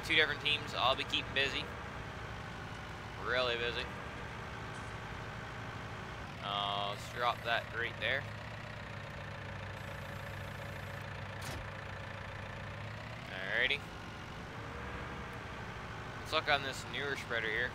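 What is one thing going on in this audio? A tractor engine hums steadily at idle.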